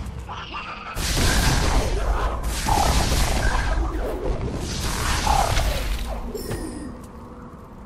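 Loud magical blasts burst out in quick succession.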